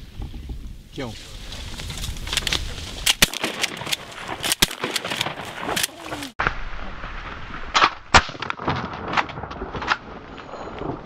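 Geese honk as they take off from water.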